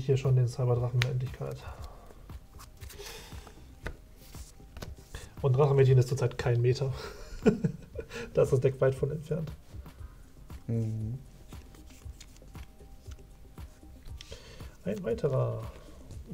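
Playing cards shuffle and slap on a table.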